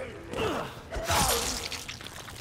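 A heavy blow lands with a loud thud.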